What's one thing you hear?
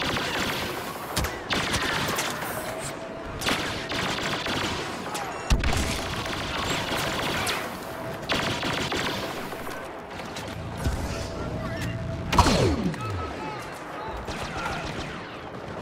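Blaster rifles fire in rapid bursts.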